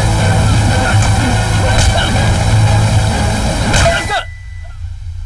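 Punches thud in a fistfight between men.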